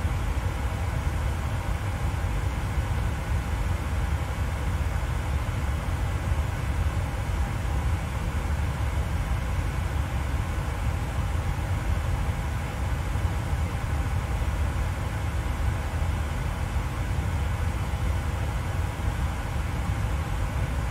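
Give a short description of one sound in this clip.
A jet airliner's engines drone steadily, heard from inside the cockpit.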